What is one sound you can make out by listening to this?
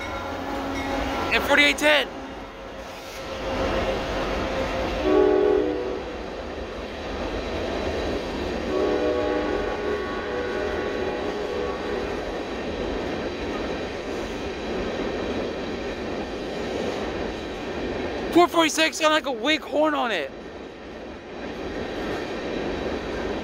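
A freight train rumbles and clatters steadily.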